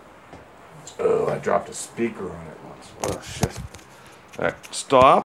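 A middle-aged man speaks casually, close to the microphone.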